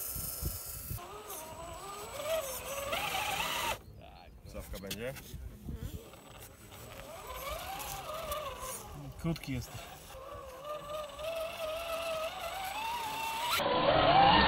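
A small electric motor whines, rising and falling in pitch.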